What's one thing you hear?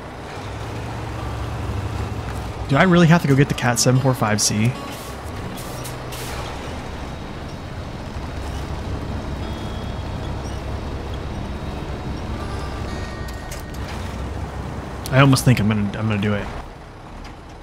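A heavy truck engine rumbles low and steadily.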